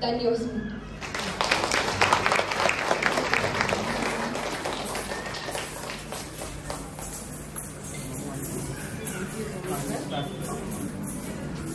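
Ankle bells jingle.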